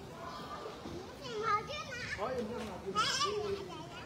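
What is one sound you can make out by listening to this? Young children call out close by, outdoors.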